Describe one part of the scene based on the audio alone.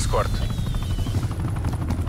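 An assault rifle fires bursts.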